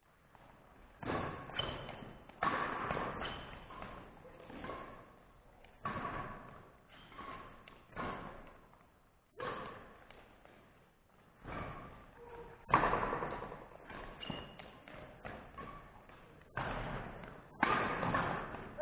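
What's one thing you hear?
Badminton rackets smack a shuttlecock back and forth, echoing in a large hall.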